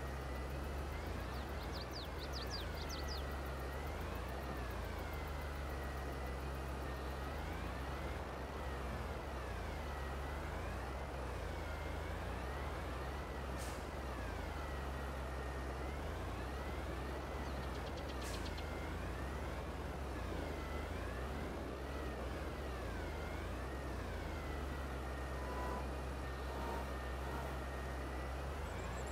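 A tractor engine hums and rises and falls in pitch as it drives back and forth.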